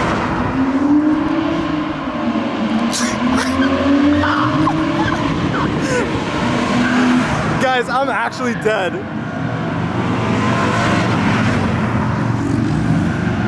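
Tyres rush over the road.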